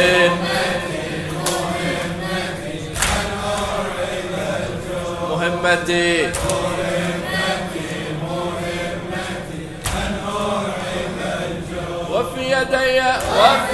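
A man chants with feeling into a microphone.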